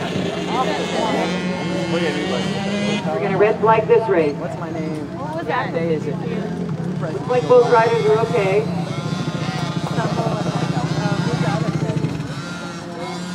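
Small motorbike engines buzz and whine in the distance.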